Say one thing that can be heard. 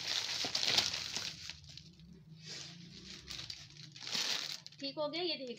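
Plastic wrapping crinkles and rustles as hands handle it.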